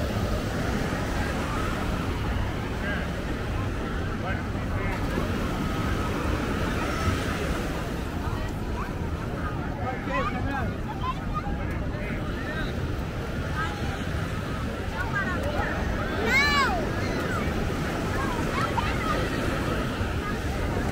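A crowd of people chatters and calls out in the distance.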